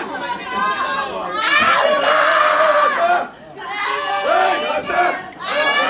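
A crowd of spectators shouts and cheers loudly in a large hall.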